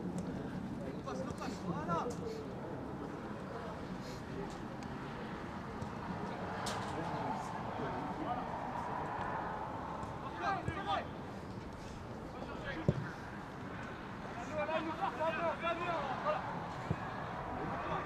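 Young men shout to each other from a distance across an open field.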